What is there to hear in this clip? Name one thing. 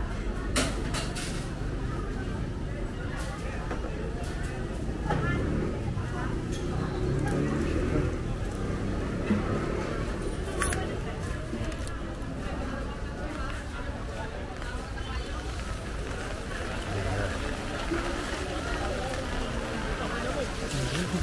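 Voices murmur in the distance outdoors.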